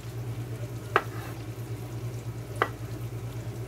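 A knife chops on a wooden cutting board.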